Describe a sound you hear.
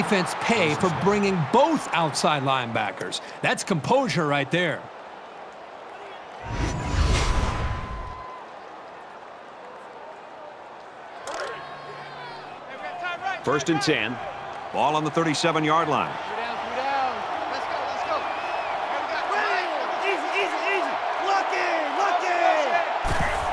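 A large crowd roars and murmurs in a big stadium.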